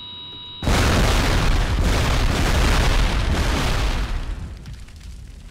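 A loud explosion roars and slowly dies away.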